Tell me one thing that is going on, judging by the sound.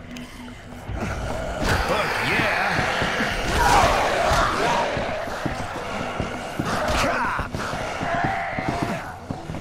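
Heavy blows thud against a zombie in quick succession.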